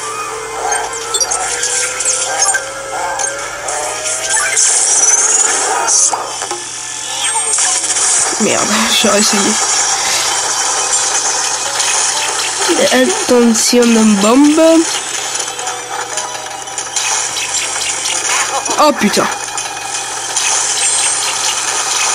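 Video game sound effects and music play from a small speaker.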